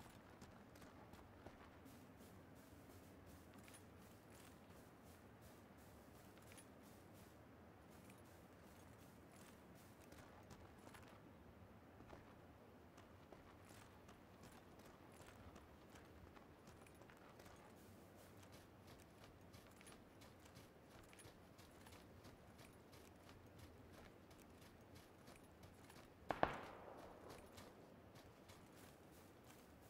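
Footsteps run quickly through grass.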